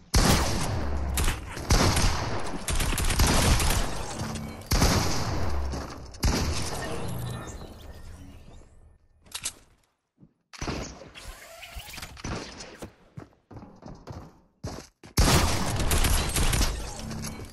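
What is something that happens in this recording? Rapid gunshots crack.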